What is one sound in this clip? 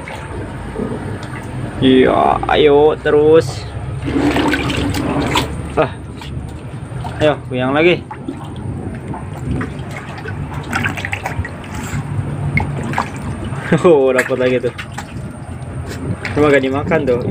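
An otter splashes and paddles in a tub of water.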